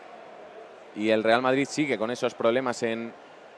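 A man talks to a group of players, heard from a distance.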